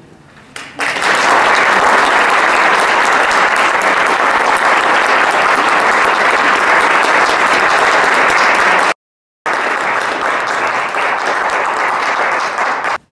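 An audience claps loudly and steadily in a hall.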